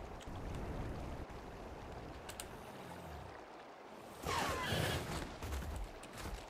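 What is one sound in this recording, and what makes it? A large winged creature flaps its wings in flight.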